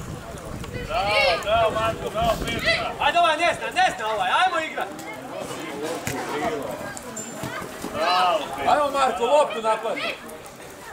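Young male players shout to each other from a distance.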